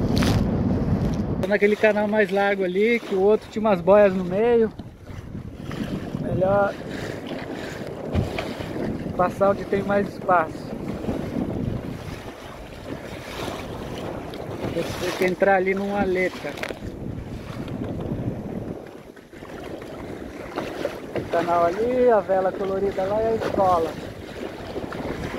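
Choppy water splashes against a small boat's hull.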